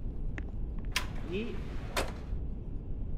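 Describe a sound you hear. A sliding door opens with a soft thud.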